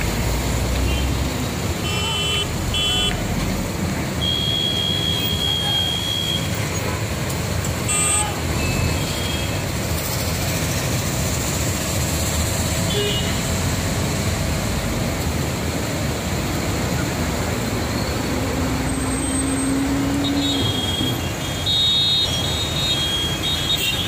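Car engines idle and hum steadily in a slow traffic queue outdoors.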